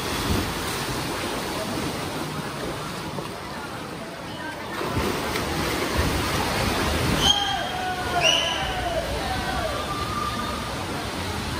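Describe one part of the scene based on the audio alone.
Swimmers splash and churn the water in an echoing indoor pool.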